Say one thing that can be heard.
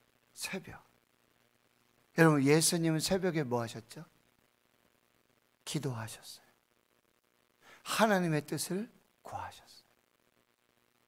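A middle-aged man speaks with emphasis into a microphone, in short phrases with pauses.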